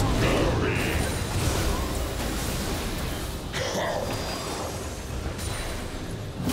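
Magic spells burst and whoosh in a fast fight.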